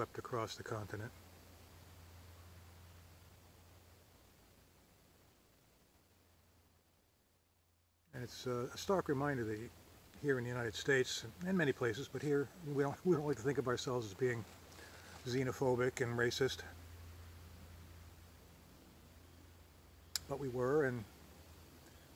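An older man speaks calmly, close to the microphone.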